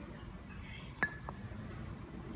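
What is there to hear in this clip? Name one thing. A weight knocks on the pavement.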